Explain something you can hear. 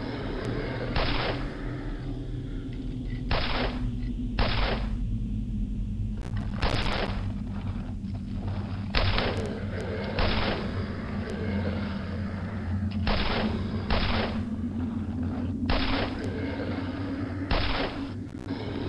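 Pistol shots ring out one at a time.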